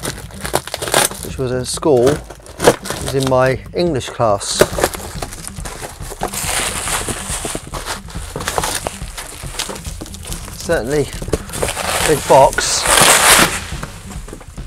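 Plastic wrap crinkles and rustles as a wrapped box is handled.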